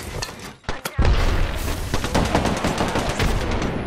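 A grenade explodes with a loud boom.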